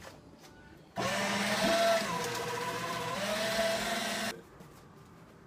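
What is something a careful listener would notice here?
Paper rustles as a man opens envelopes.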